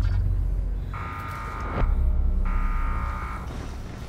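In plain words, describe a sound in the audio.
A soft electronic chime rings.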